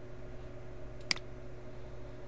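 A mouse button clicks once.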